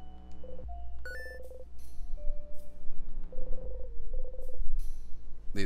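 Rapid electronic blips chatter as text types out.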